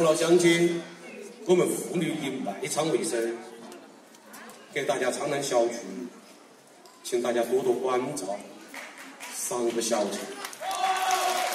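A man speaks loudly over loudspeakers in an open-air arena.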